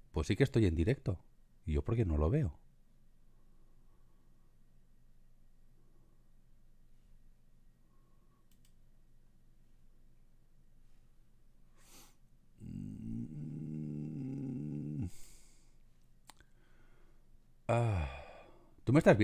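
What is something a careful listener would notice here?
A man talks calmly and close into a microphone, in short bursts with pauses.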